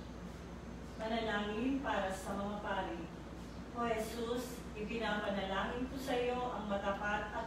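A middle-aged woman reads aloud calmly into a microphone.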